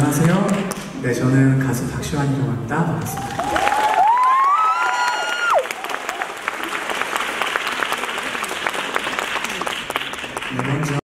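A young man sings through a microphone in a large echoing hall.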